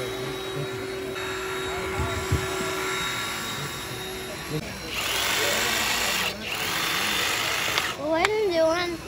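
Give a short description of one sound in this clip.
A hydraulic rescue tool whines and hums as it runs.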